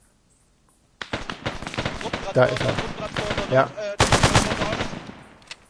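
A rifle fires in rapid bursts nearby.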